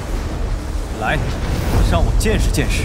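A young man speaks in a low, firm voice.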